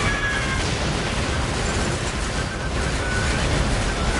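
Explosions boom loudly.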